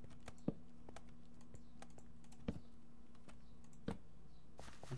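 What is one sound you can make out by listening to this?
Blocks are placed with short, soft clicks.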